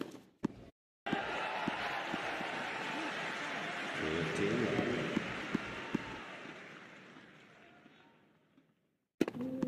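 A crowd applauds loudly, then the applause slowly fades.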